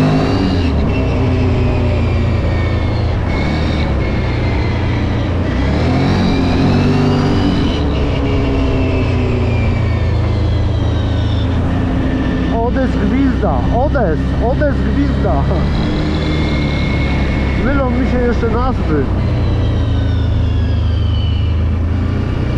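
A V-twin quad bike cruises along a road, its engine rising and falling in pitch.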